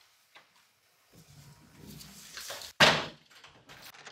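A door latch clicks and a door swings open.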